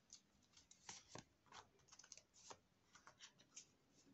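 Playing cards tap and slide on a table.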